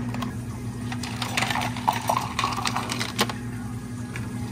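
Ice cubes rattle and clatter in a plastic cup.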